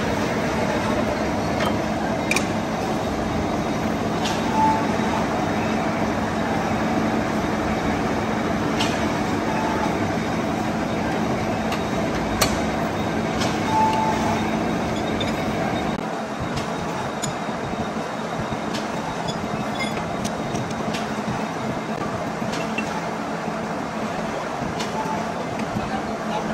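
A large vertical lathe runs with a steady hum.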